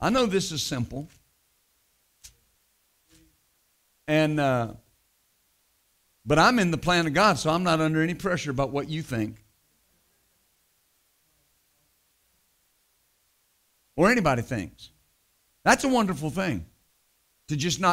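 A middle-aged man speaks into a microphone in measured phrases with long pauses.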